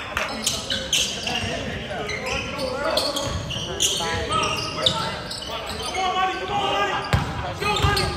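Young men shout and call out in a large echoing gym.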